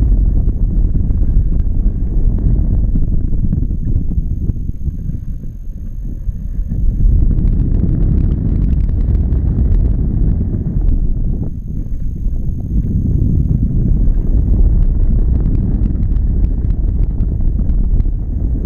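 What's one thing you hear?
Strong wind rumbles and buffets steadily against the microphone outdoors.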